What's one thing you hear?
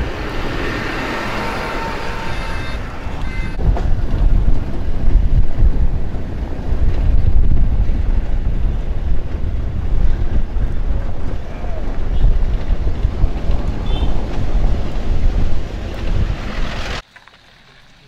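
A heavy diesel engine rumbles loudly nearby.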